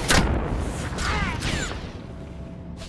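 Laser blasts zap and whine in a game fight.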